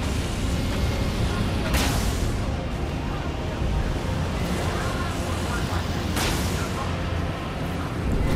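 A huge beast roars and growls.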